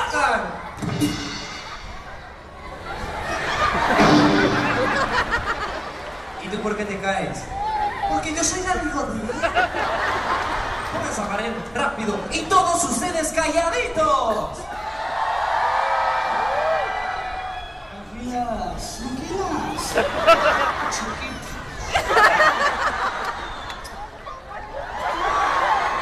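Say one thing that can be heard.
Men talk loudly and animatedly in a large echoing tent.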